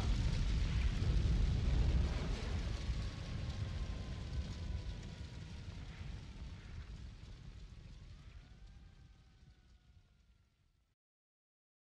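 An electric guitar plays a heavy, distorted chord that rings out and slowly fades.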